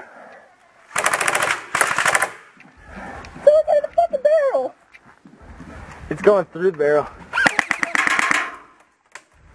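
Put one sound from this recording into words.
A paintball marker fires rapid bursts of shots close by.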